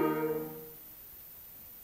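A school band plays a final brass chord that stops.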